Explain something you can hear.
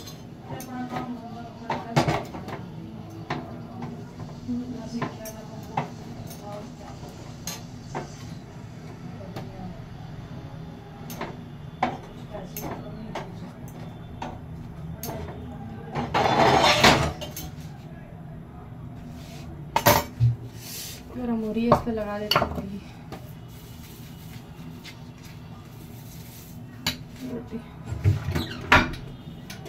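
Utensils click and knock now and then.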